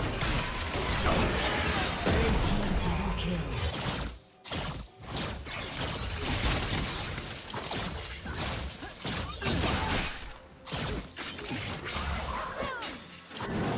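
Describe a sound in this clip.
Game combat effects crash, zap and whoosh in a fast, busy fight.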